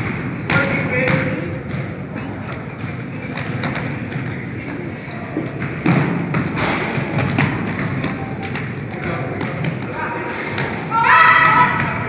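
Boys shout and call out to each other across the gym.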